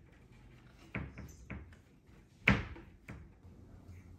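A wardrobe door knocks and thumps.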